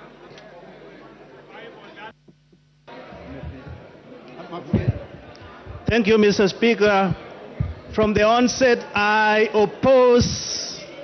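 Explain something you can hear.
A crowd of people murmurs in the background.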